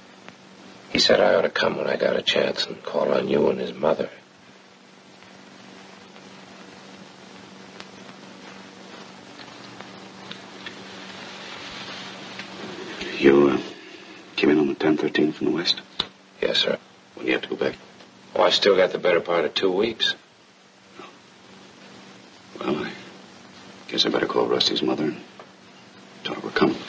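A man speaks calmly and earnestly.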